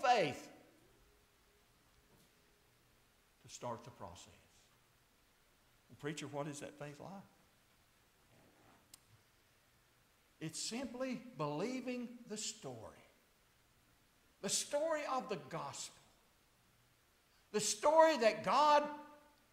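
An older man preaches with animation through a microphone, in bursts with pauses between.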